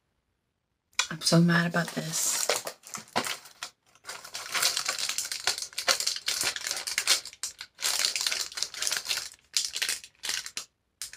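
Packaging crinkles as a box is opened.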